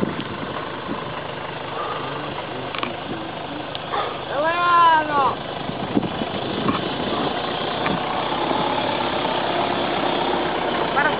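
A four-wheel-drive truck's engine rumbles as the truck crawls down a steep dirt slope.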